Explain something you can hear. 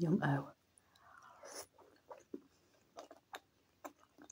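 A woman chews food with wet, crunchy sounds close by.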